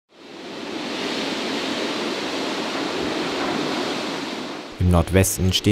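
Wind rushes through the trees.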